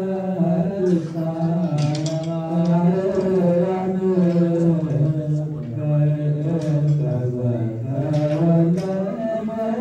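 A group of men chant together in a low, steady drone, echoing through a large hall.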